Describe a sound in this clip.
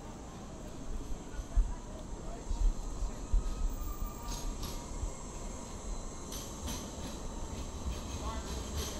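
A tram hums as it passes close by.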